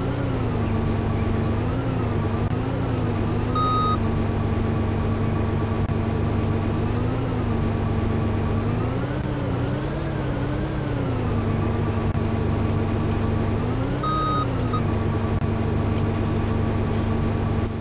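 A diesel excavator engine hums steadily, rising and falling in pitch as it works.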